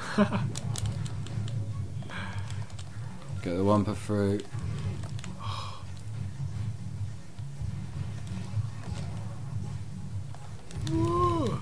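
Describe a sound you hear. Upbeat game music plays steadily.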